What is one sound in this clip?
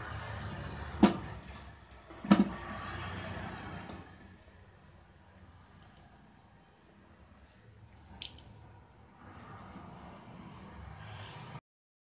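Pieces of vegetable clink onto a metal plate.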